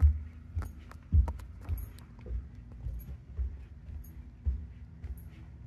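Footsteps thud on carpeted stairs.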